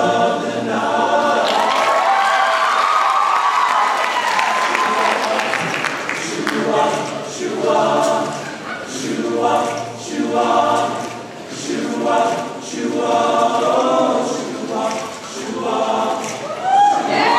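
A piano plays along with the choir.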